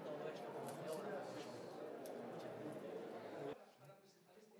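An elderly man speaks into microphones in a noisy room.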